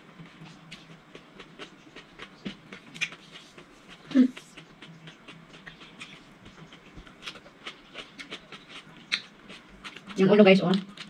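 A woman chews and eats food with soft mouth sounds.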